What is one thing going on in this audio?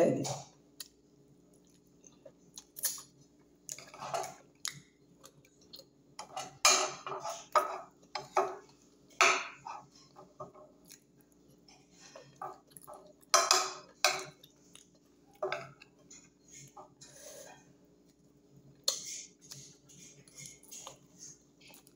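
A woman chews food noisily close to the microphone.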